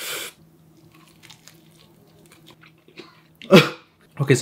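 A man crunches into crispy food up close.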